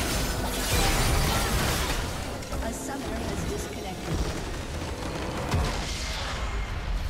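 Magic blasts crackle and boom in a fierce battle.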